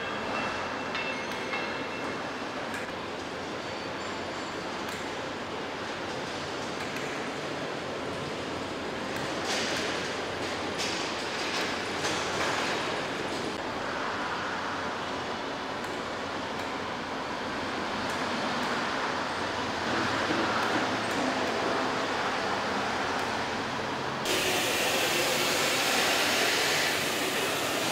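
Factory machinery hums and clanks steadily in a large echoing hall.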